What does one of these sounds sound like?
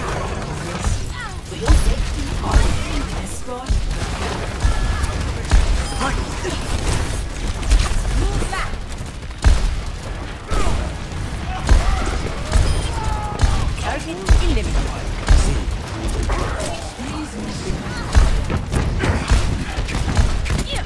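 A grenade launcher fires with deep thumps.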